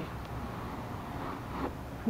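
A cloth rubs softly over leather.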